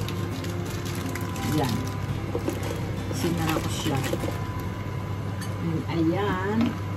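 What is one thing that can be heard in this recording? Food sizzles softly in a frying pan.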